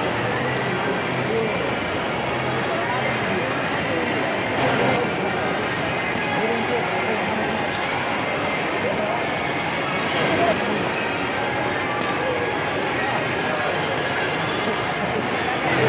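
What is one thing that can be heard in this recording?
A ping pong ball clicks back and forth on paddles and a table.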